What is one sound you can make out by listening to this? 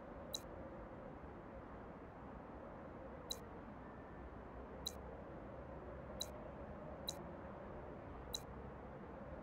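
Short, sharp menu clicks sound now and then.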